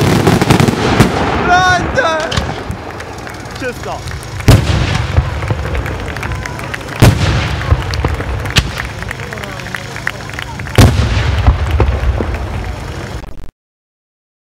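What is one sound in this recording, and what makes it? Firecrackers explode in loud bursts outdoors, booming and echoing.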